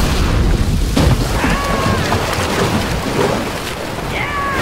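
Wooden crates crash and splinter with a loud impact.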